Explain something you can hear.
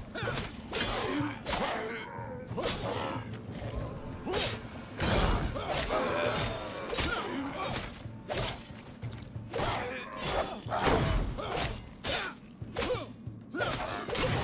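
Game sword strikes clash and thud.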